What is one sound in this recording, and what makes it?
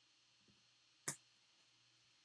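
A hard plastic card holder clicks as it is set down.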